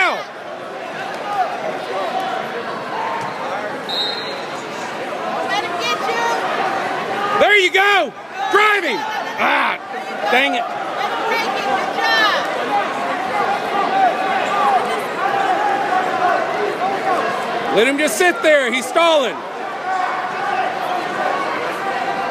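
A crowd chatters and murmurs throughout a large echoing hall.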